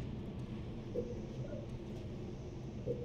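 A short electronic chime sounds as a menu opens.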